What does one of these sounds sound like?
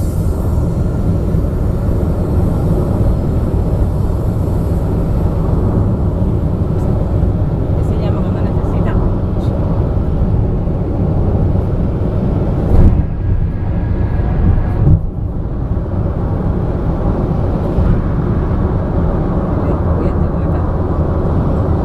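A car drives fast along a highway with a steady low road rumble.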